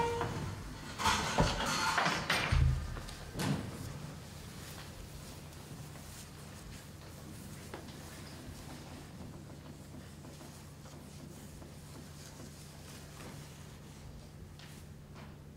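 Stiff paper rustles and crackles as it is handled.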